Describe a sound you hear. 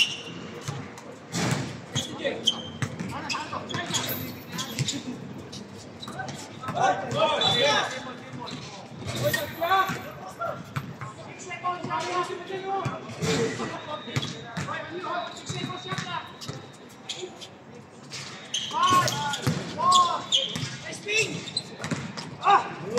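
Young players shout and call to one another outdoors.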